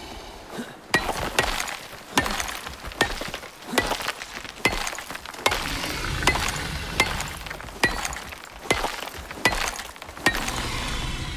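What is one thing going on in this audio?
A stone hammer strikes rock in sharp, repeated knocks.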